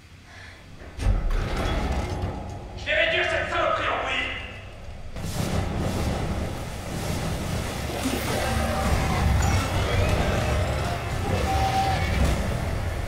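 A heavy machine starts with a clunk and rumbles loudly.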